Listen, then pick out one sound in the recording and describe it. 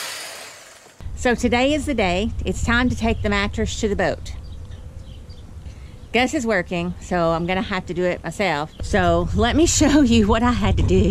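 A middle-aged woman talks with animation close to the microphone.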